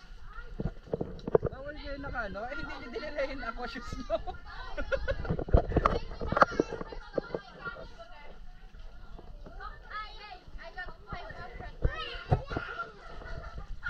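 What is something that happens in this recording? Water splashes and sloshes close by as people swim.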